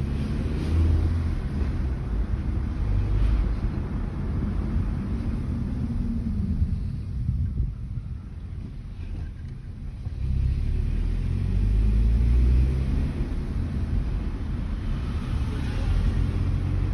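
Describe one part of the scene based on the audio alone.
A car engine hums and rumbles low while driving.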